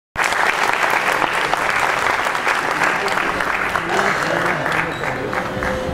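A classical ensemble plays on stage in a hall.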